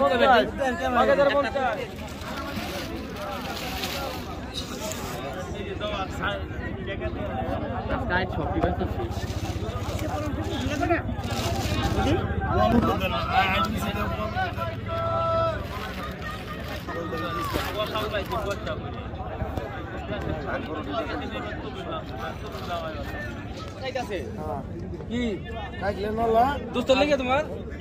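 A crowd of men talk over one another outdoors.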